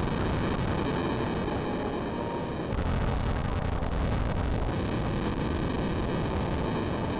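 A fire roars and crackles steadily.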